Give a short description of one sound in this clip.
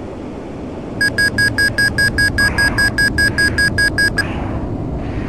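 A cockpit warning beeps rapidly and repeatedly.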